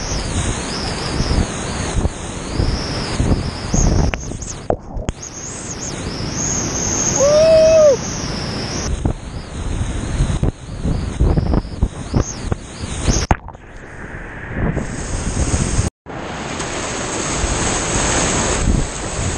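Whitewater rapids roar loudly and close by.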